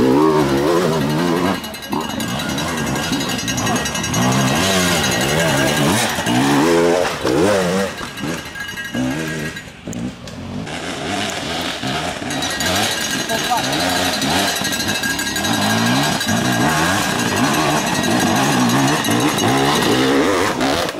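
A dirt bike engine revs hard and sputters up a rocky slope close by.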